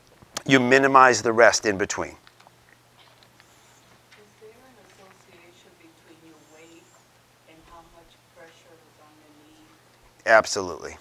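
A middle-aged man speaks, loud and close at times, softer in between.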